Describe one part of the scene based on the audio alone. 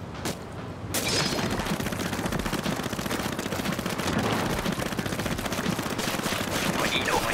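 Ink sprays and splatters in quick, rapid bursts.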